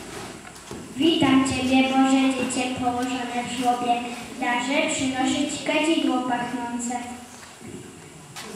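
A young boy sings through a microphone, heard over a loudspeaker.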